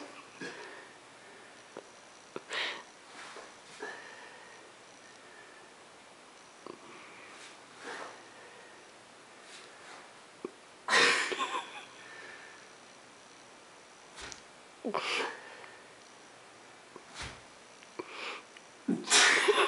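A man talks to a dog nearby in a calm, playful voice.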